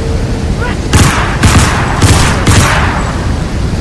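Pistol shots ring out in a quick burst of four.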